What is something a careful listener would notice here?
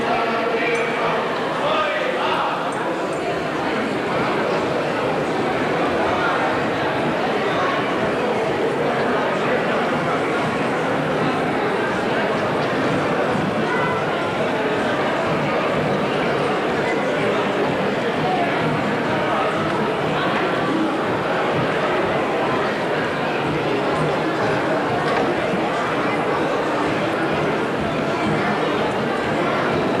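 Dancers' feet stamp and shuffle on a wooden stage.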